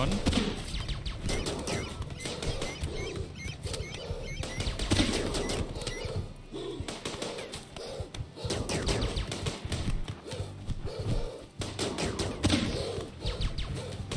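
Guns fire in quick bursts during a fight.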